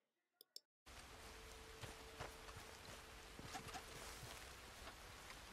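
Footsteps crunch softly through dry grass.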